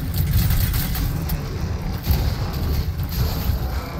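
A heavy blow lands on a creature with a loud thud.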